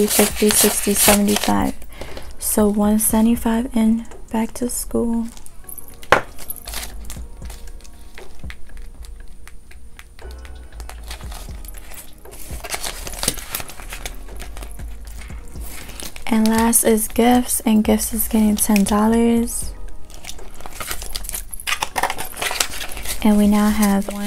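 Paper banknotes rustle and flap as they are counted.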